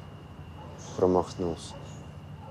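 A young man speaks briefly nearby.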